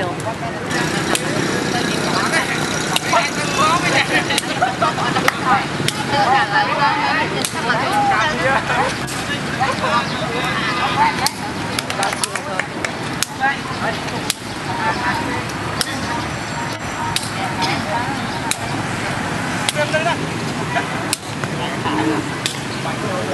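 Several young men call out and chatter outdoors.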